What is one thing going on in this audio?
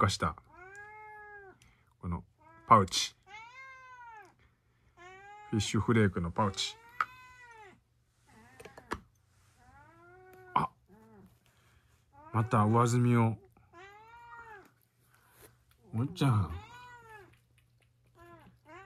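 A kitten meows repeatedly in high, drawn-out cries.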